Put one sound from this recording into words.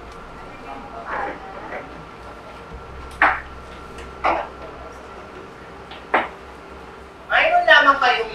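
A man speaks calmly to a small group.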